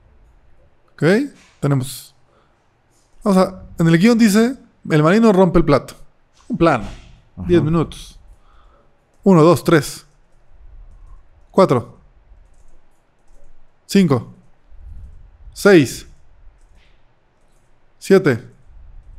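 A man speaks close to a microphone in short bursts.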